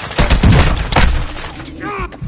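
Rapid gunshots ring out in loud bursts.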